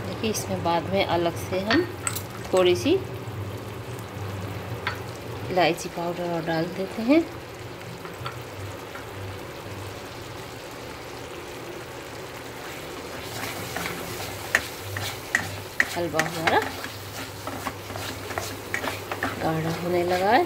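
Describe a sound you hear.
A wooden spoon stirs and scrapes a thick mixture in a pan.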